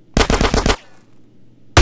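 A rapid burst of gunfire rings out.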